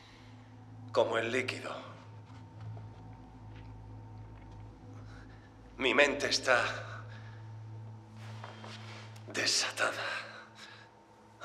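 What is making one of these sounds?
A young man speaks slowly and quietly, with long pauses.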